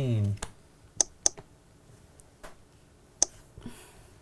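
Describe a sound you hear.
A tablet gives short electronic beeps.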